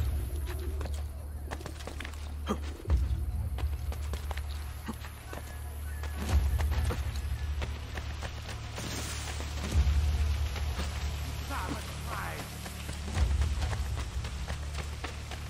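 Quick footsteps patter on stone and dry grass.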